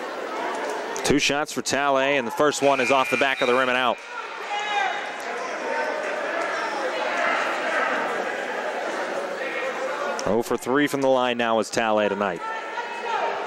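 A crowd of spectators chants loudly in unison.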